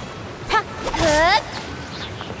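A magical burst strikes with a bright ringing whoosh.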